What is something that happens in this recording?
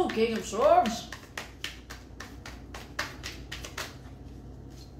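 Playing cards shuffle and riffle between hands.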